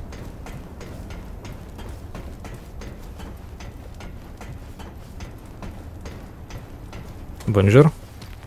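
Footsteps clang steadily on a metal grate floor.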